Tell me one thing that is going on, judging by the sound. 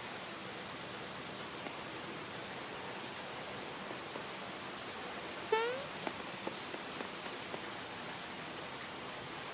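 Steady rain falls and patters.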